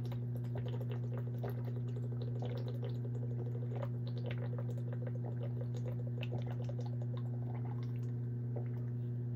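Water gurgles and glugs in a plastic bottle.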